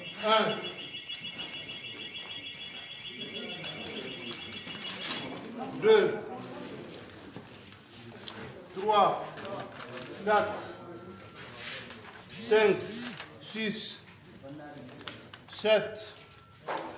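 Sheets of paper rustle and flap as they are handled.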